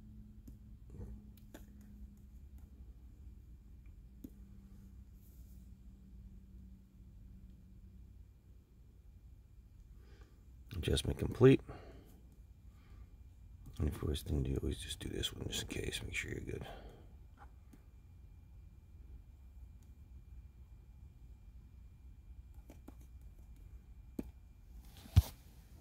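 A laptop touchpad button clicks a few times.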